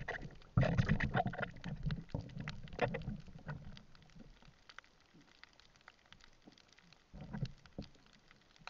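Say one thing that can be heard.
Air bubbles rumble and gurgle underwater.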